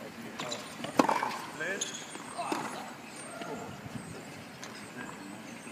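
A tennis racket strikes a ball outdoors.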